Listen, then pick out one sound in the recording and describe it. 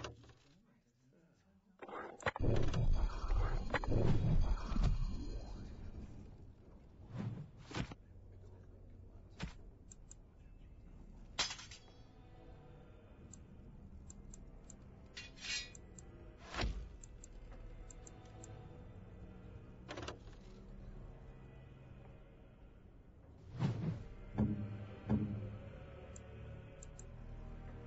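Soft interface clicks tick as menu items are selected.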